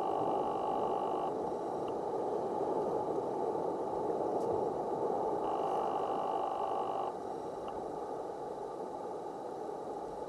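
Water splashes and sloshes as a person paddles in a shallow pool.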